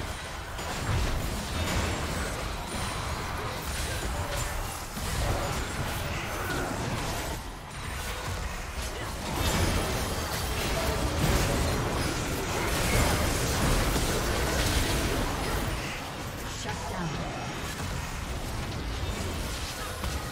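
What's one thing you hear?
Game spell effects whoosh, crackle and explode in a fast fight.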